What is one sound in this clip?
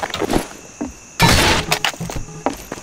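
A crowbar smashes into a wooden crate with a loud crack.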